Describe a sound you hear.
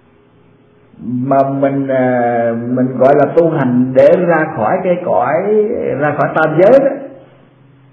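An elderly man speaks slowly through a microphone.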